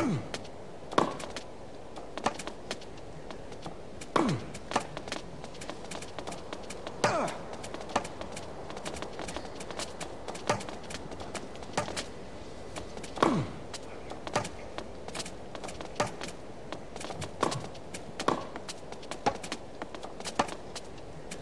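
Tennis rackets strike a ball in a rally.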